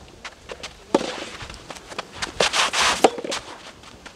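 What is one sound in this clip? A tennis ball is struck with a racket with sharp pops.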